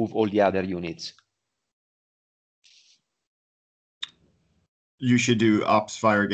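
A man talks with animation over an online call, pausing briefly.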